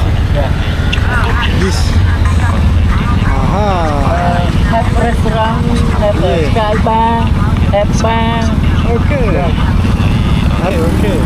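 Music with singing plays from a phone's small speaker.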